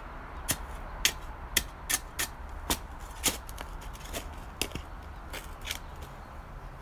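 A metal shovel digs and scrapes into rocky soil, striking stones.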